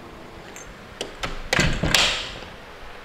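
A hand knocks sharply on a door several times.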